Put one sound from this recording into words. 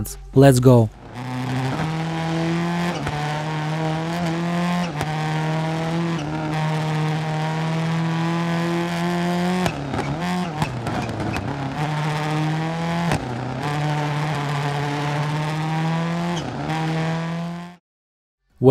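A rally car engine roars at high revs.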